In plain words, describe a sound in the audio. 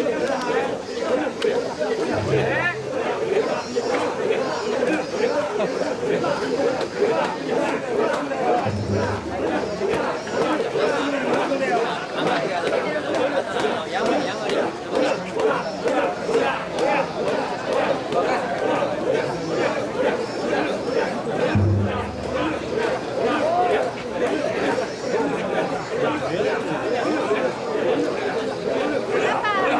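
Wooden clappers clack sharply.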